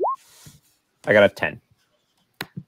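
A young man speaks briefly over an online call.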